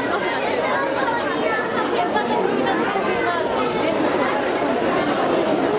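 A crowd of children chatters and calls out nearby.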